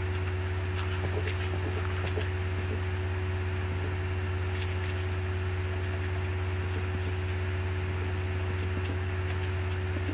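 Blocks are placed with soft, dull thuds.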